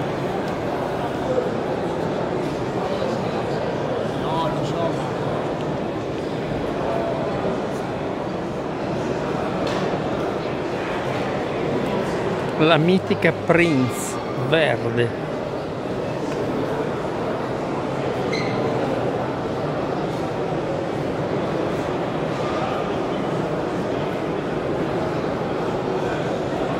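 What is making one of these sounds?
A crowd murmurs throughout a large, echoing hall.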